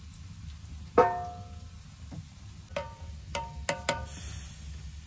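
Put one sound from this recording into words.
A small metal pot clinks as it is set on a stove top.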